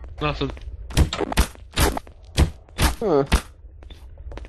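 A gun fires several sharp shots in quick succession.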